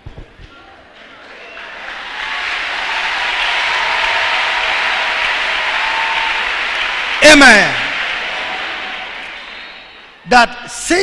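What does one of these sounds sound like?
A large crowd applauds and cheers, then fades.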